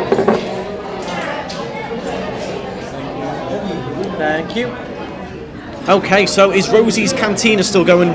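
Many people chatter in the background of a busy room.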